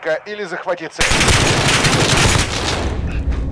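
A gun fires a rapid burst of shots at close range.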